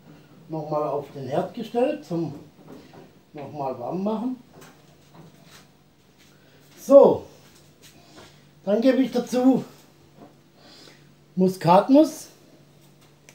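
An older man speaks calmly close by.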